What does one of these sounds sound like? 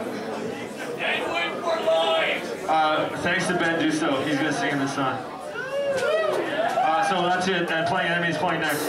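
A man shouts into a microphone over loudspeakers.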